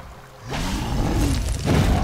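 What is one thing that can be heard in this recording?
A sword slashes and strikes a monster.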